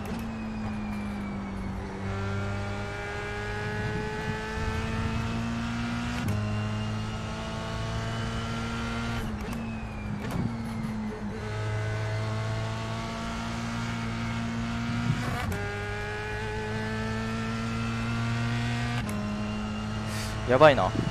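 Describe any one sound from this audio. A racing car engine whines and revs up, dropping in pitch at each gear change.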